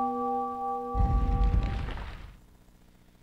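Heavy stone rumbles and grinds loudly.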